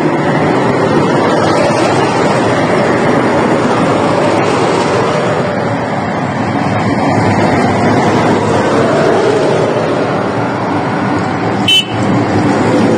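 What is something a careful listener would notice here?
A heavy armoured vehicle's diesel engine rumbles loudly as it drives past.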